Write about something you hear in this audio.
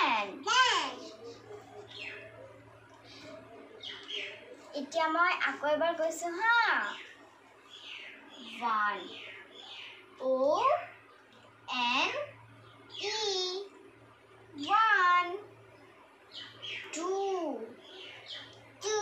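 A young girl talks close by, calmly and clearly.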